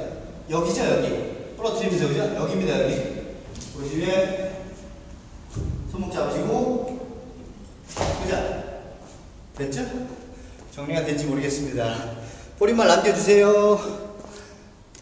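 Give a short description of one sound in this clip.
A young man talks with animation close by, in an echoing room.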